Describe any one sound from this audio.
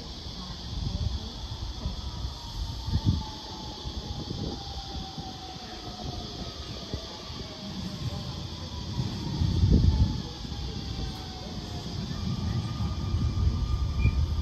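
An electric train rolls in with a falling whine and slows to a stop.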